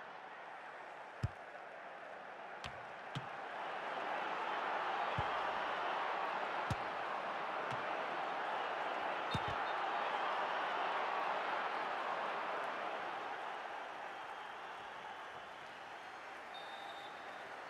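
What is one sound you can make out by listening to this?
A stadium crowd roars steadily, swelling and then fading.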